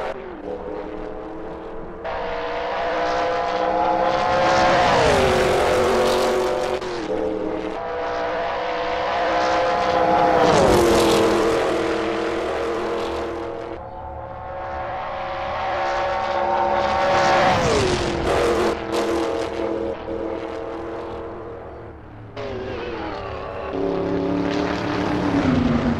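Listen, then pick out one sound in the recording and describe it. A racing car engine roars at high revs, rising and dropping in pitch as it speeds past.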